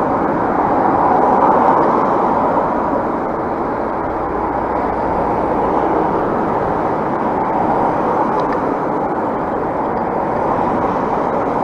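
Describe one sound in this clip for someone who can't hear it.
Cars drive past nearby on a road.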